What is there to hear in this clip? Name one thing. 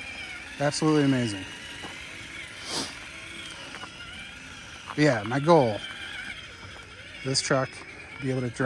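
A small electric motor whines in short revving bursts.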